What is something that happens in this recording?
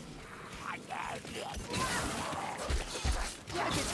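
Blades strike and thud in a close fight.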